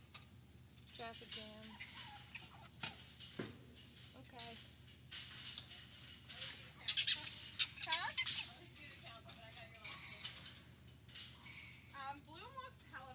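A young woman speaks softly and calmly close by.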